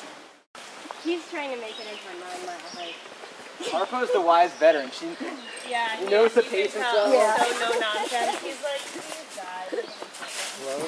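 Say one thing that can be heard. A young woman talks with animation close by outdoors.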